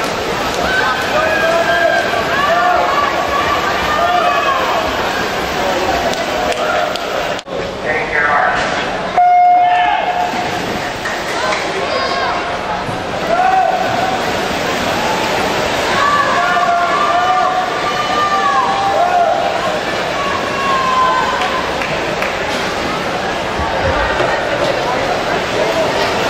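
Swimmers splash and kick through the water.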